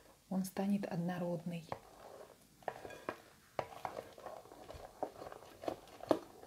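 A spoon stirs in a bowl, tapping against the sides.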